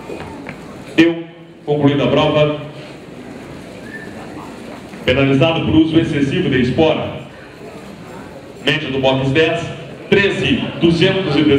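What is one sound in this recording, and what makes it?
A man calls out rapidly through a loudspeaker in a large echoing hall.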